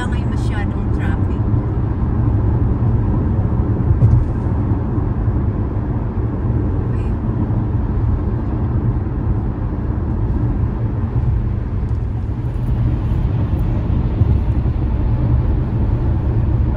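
A car's engine and tyres rumble steadily on a road.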